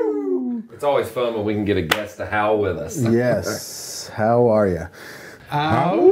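Men talk and laugh with animation close to microphones.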